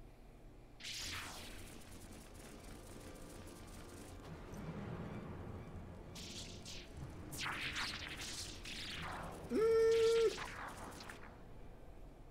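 Large insect wings buzz and flutter loudly.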